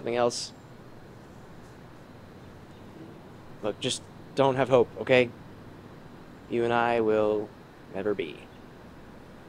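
A young man speaks close by in short, halting bursts.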